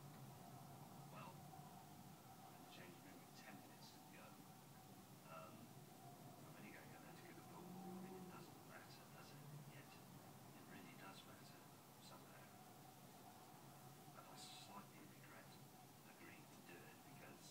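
A middle-aged man speaks calmly, heard through a television's loudspeaker.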